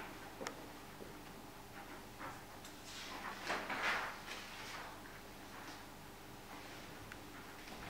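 Pens scratch on paper.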